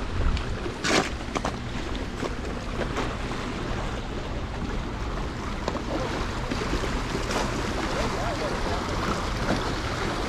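Small waves lap against rocks.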